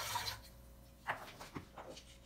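A glass pot clinks against a stone counter.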